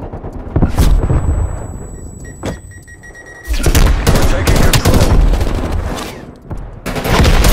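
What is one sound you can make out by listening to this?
An assault rifle fires in bursts.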